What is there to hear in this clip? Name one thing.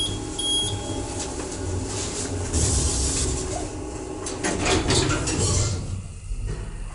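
Lift doors slide shut with a rumble.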